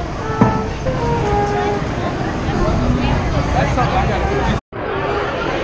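Many people chatter and talk outdoors.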